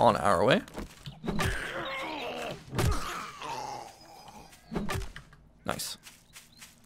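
A wooden club thuds heavily into a body.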